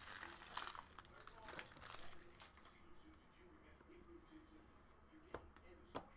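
Hands tear open a foil card pack with a crinkle.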